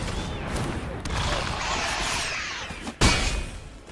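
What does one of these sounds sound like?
Bright magical sparkles shimmer and hiss.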